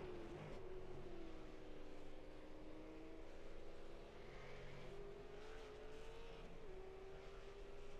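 A race car engine idles with a steady, droning hum.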